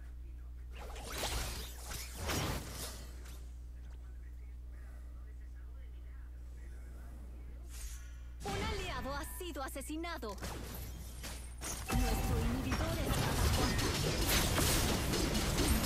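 Magic blasts whoosh and crash in a video game battle.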